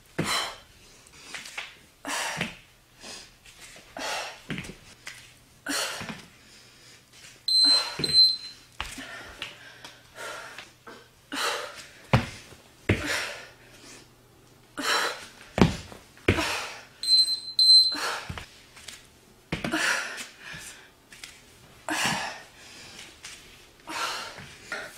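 Feet thump softly on a floor mat.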